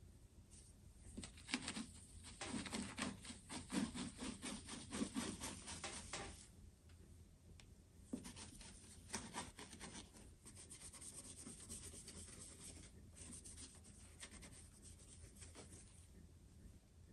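A foam pad rubs against a car's body panel with a soft swishing.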